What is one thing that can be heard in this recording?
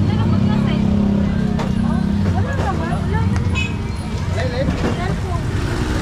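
Women talk and laugh nearby.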